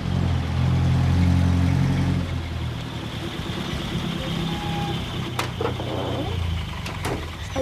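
A bus engine rumbles and idles, then stops.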